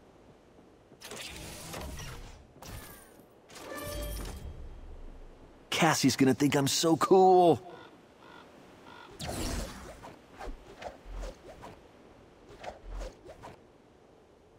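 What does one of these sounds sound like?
Video game sound effects chime and whoosh as items are picked up.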